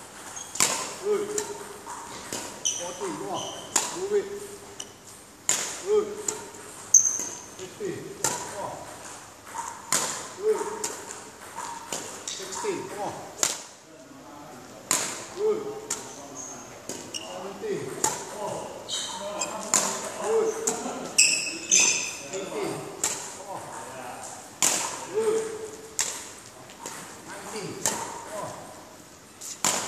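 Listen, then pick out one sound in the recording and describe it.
A badminton racket smacks shuttlecocks again and again in a large echoing hall.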